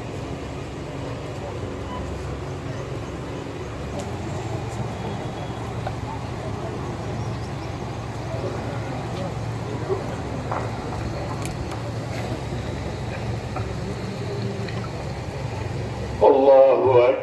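A large crowd of men murmurs softly outdoors.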